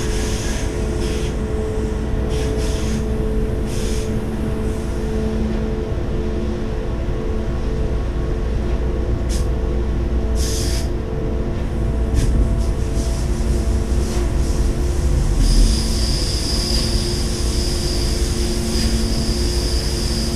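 A train rumbles steadily along the rails with a low engine hum.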